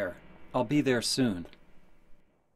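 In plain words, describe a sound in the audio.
A man speaks calmly.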